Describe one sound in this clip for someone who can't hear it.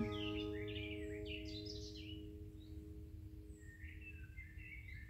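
An acoustic guitar chord rings out and fades.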